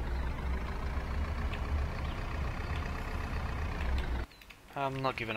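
A truck engine hums steadily as the truck drives.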